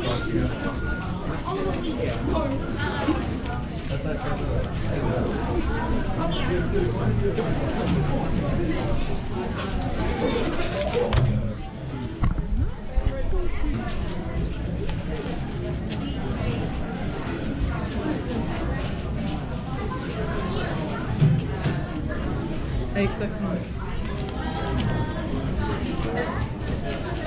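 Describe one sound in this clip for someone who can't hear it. Many people chatter in the background of a large, busy room.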